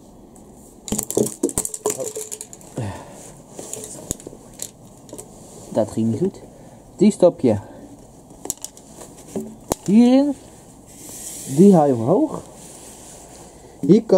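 Plastic pipes knock and clatter as they are handled.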